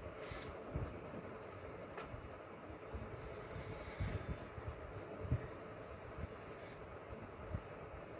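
A pencil scratches softly on paper as a compass draws an arc.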